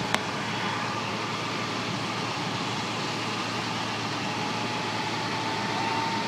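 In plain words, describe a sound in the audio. A fire engine's diesel engine runs outdoors.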